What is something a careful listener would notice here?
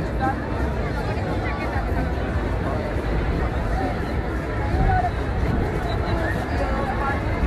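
A large crowd chatters and murmurs outdoors.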